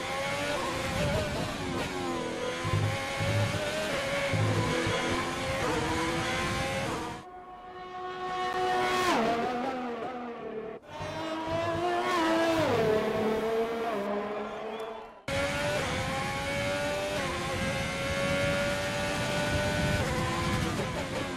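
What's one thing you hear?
A Formula 1 car's turbocharged V6 engine screams at high revs.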